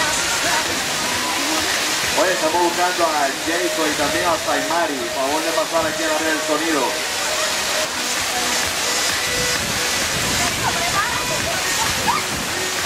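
Water pours steadily down a waterfall and splashes into a pool.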